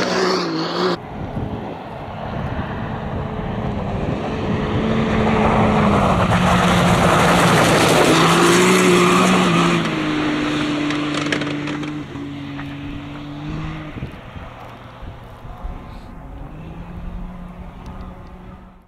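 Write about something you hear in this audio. An off-road buggy engine drones closer, roars past and fades into the distance.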